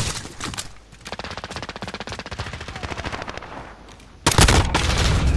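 Footsteps crunch over rough ground.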